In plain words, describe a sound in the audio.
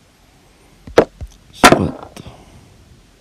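A game piece clicks sharply into place.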